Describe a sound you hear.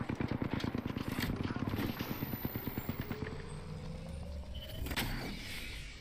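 A shield battery charges with a rising electric whine.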